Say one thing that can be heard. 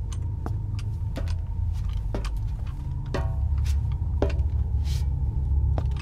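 Boots clank on metal stairs.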